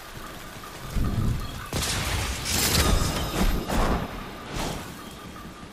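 Blades swing and clash in combat.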